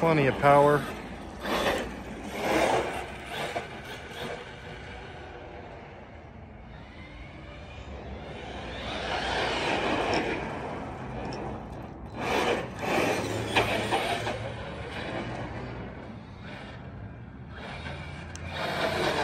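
Plastic tyres rumble and skid on rough asphalt.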